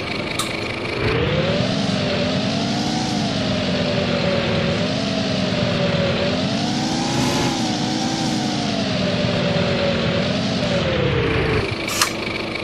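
A diesel bus engine pulls away and accelerates, its pitch rising and dropping with each gear change.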